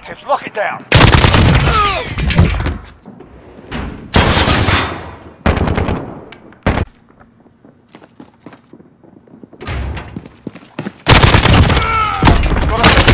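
Gunfire rattles in short, loud bursts.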